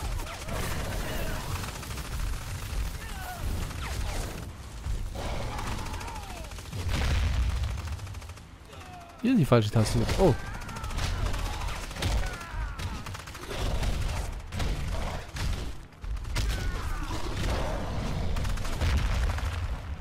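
Fire bursts with a deep roaring whoosh.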